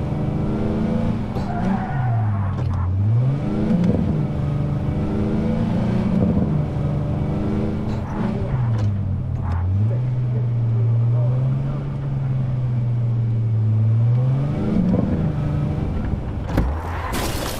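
A car engine hums and revs up and down as the car drives.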